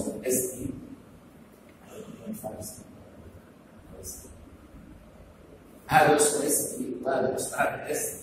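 An elderly man speaks aloud.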